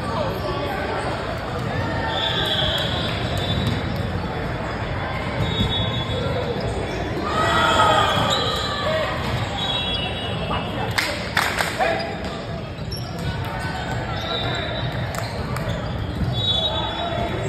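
Young players chatter and call out in a huddle, echoing in a large hall.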